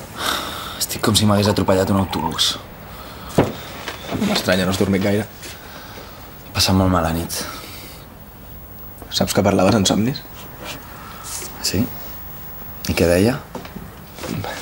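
A teenage boy answers in a tired voice nearby.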